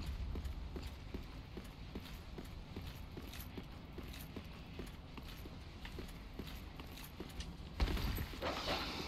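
Footsteps thud in a quick, even rhythm on stone.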